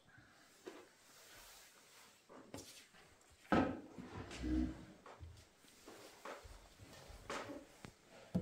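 A cup and other objects knock and clatter as they are handled close by.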